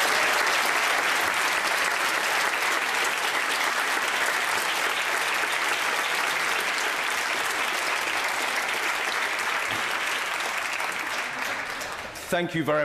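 A large crowd applauds loudly in an echoing hall, then the applause fades away.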